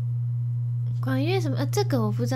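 A young woman speaks up close into a microphone.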